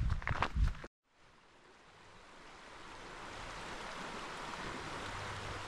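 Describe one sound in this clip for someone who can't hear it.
A river rushes steadily and grows louder.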